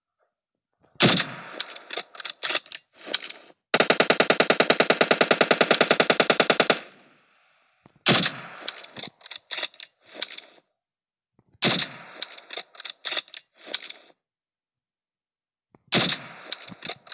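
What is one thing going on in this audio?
A sniper rifle fires single loud shots.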